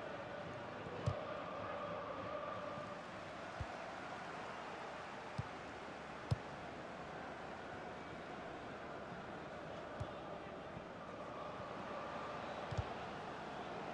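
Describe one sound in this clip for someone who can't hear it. A football is kicked with dull thuds now and then.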